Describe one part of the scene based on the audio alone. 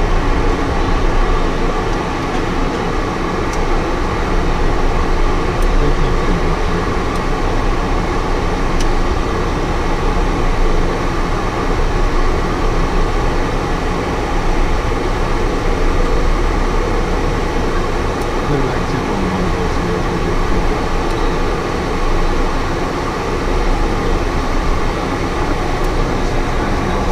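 Wind rushes past the canopy.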